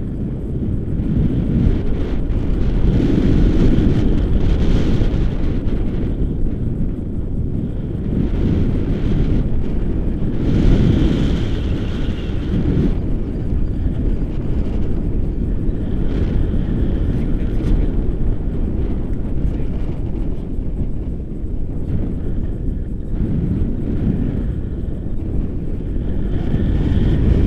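A young woman speaks excitedly close by, partly drowned by wind.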